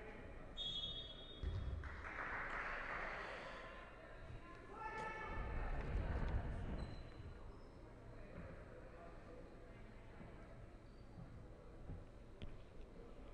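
A crowd murmurs and cheers in a large echoing hall.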